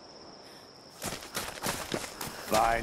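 Footsteps crunch through dry leaves and undergrowth.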